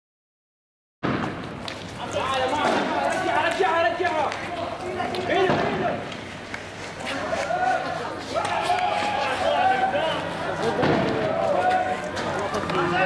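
Young men shout and call out outdoors in the street.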